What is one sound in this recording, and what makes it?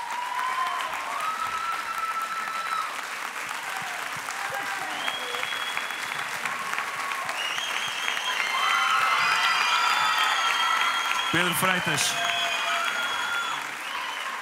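A large crowd cheers and applauds in a big echoing hall.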